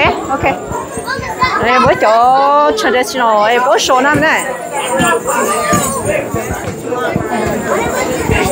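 A crowd of adults and children chatter nearby in an echoing hall.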